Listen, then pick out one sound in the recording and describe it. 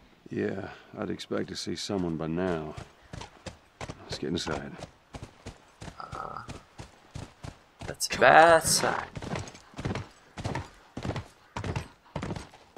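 A horse's hooves clop at a steady walk.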